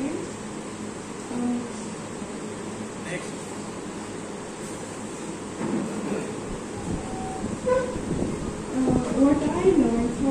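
A young woman speaks into a microphone, presenting calmly, heard through a loudspeaker in an echoing room.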